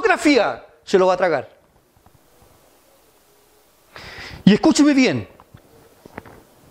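A middle-aged man preaches with emphasis into a microphone, heard through a loudspeaker.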